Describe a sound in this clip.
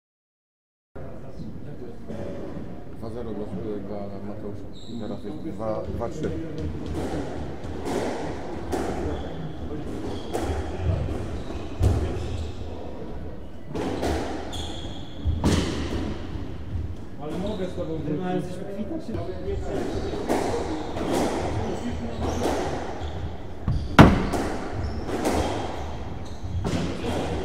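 Sneakers squeak and shuffle on a wooden floor.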